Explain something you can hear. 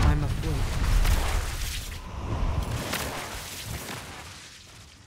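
Heavy blows and magic bursts crash during a fight.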